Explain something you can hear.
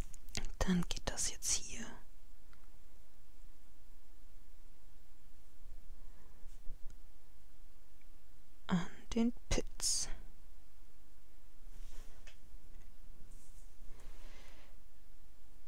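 A brush pen strokes softly on paper.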